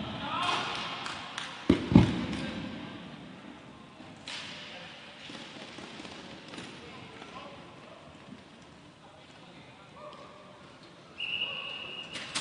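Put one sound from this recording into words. Skate wheels roll and scrape across a hard floor.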